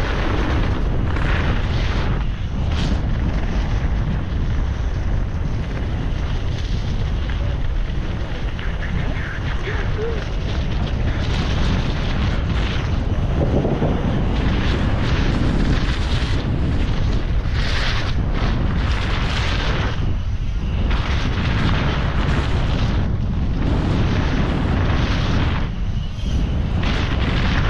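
Bicycle tyres crunch and rattle over dirt and gravel.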